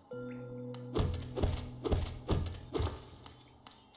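Quick blade slashes strike a creature with sharp, crisp hits.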